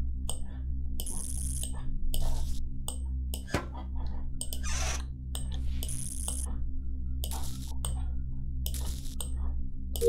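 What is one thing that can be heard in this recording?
Wires snap into place with short electronic blips.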